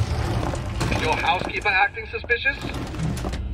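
A man's voice speaks through a small radio loudspeaker.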